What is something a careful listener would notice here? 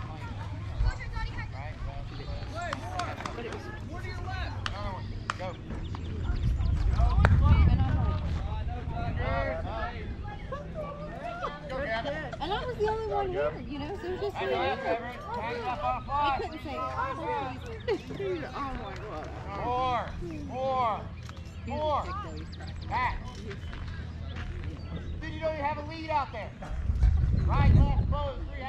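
Players call out and chatter across an open field.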